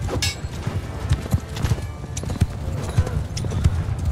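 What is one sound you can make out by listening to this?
Horses gallop over snow.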